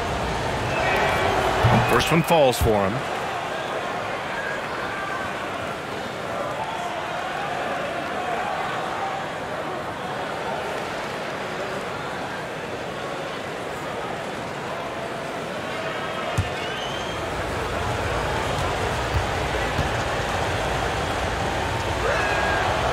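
A large crowd murmurs steadily in a big echoing arena.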